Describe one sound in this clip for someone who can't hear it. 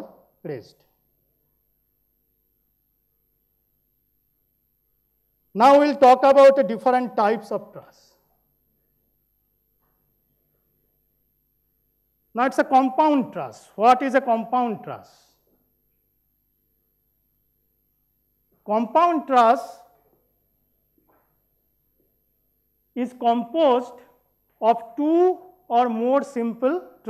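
A man speaks calmly in bursts through a microphone, with pauses between phrases.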